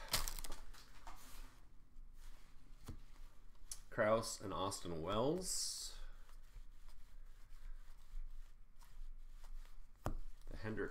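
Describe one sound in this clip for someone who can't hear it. Trading cards rustle and slide against each other in a hand.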